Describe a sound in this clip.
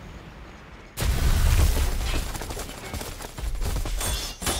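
An electric energy burst crackles and roars loudly.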